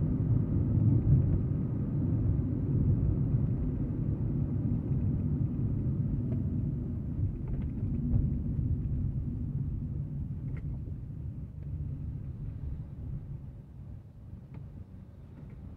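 Road noise rumbles from tyres on the street.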